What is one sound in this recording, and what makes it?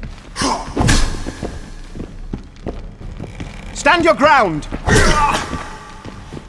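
Fists land heavy punches with dull thuds.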